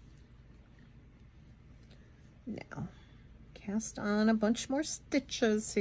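Thread rasps softly as it is pulled through fabric.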